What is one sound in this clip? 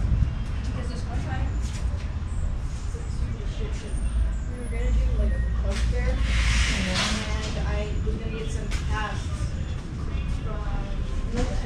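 Men and women talk in a crowd nearby, their voices overlapping.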